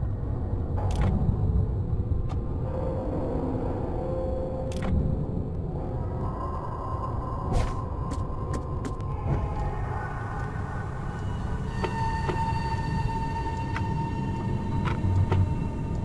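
Short sharp clicks sound as menu options are chosen.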